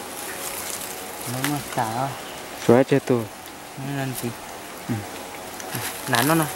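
Dry leaves and feathers rustle as birds are handled.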